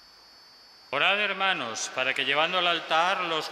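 An elderly man chants into a microphone.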